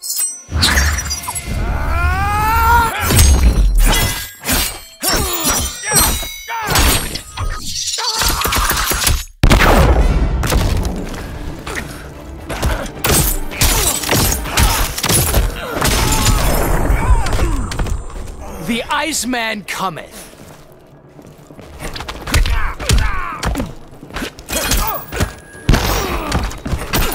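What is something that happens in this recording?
Punches and kicks land with sharp thuds and cracks.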